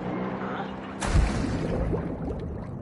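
Water splashes as a swimmer dives under.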